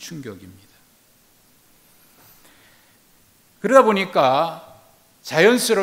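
A middle-aged man speaks slowly and earnestly into a microphone, with pauses.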